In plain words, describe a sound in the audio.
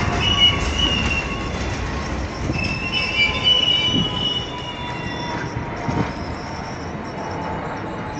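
A subway train rolls slowly in with a softer rumble.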